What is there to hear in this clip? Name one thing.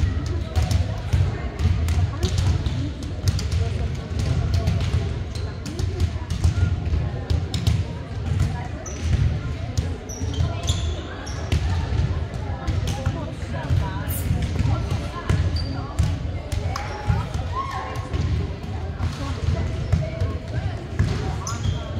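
A crowd chatters throughout a large echoing gym.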